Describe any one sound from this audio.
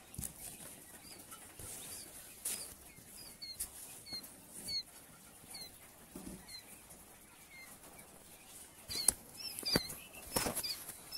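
Small chicks peep with high, short cheeps.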